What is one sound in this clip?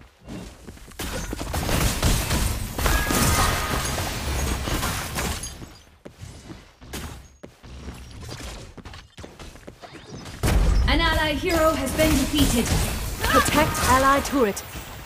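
Video game spell blasts and clashes crackle and boom loudly.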